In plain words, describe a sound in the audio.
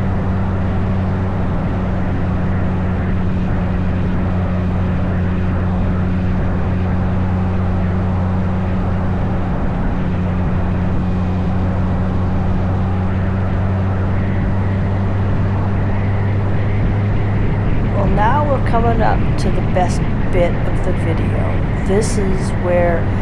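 A motorcycle engine hums steadily while riding.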